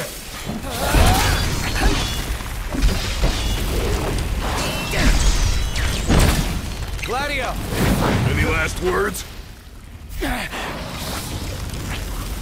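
Heavy blade blows land with loud, crunching impacts.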